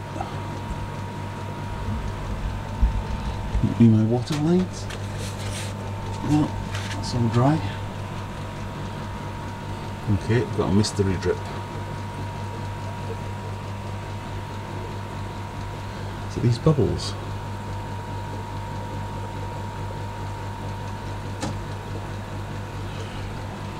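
Water bubbles softly in a fish tank.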